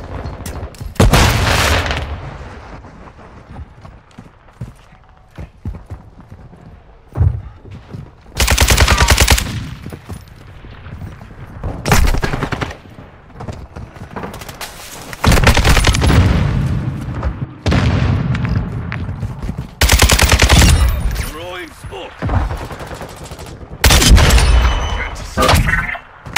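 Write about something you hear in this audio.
Automatic gunfire rattles in quick, loud bursts.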